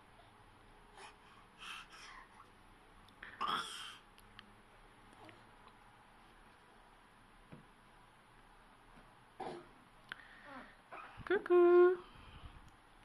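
A baby babbles and squeals nearby.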